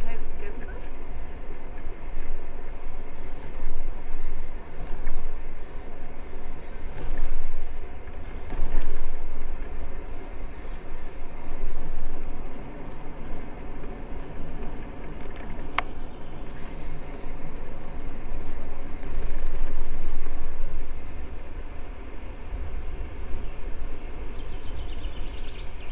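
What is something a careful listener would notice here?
Wind buffets and rumbles outdoors.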